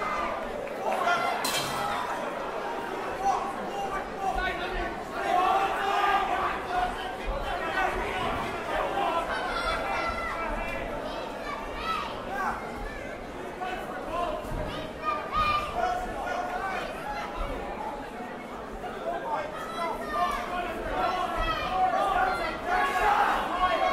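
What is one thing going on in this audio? A crowd shouts and cheers throughout, echoing in a large hall.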